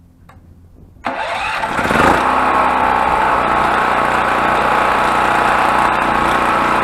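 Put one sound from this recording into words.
A petrol generator engine starts up and runs with a steady loud drone.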